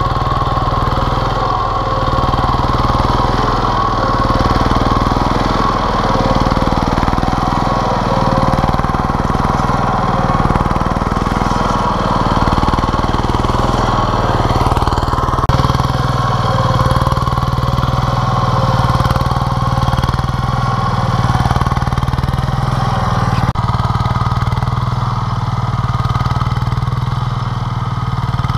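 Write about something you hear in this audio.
A small tiller engine chugs loudly and steadily, close by.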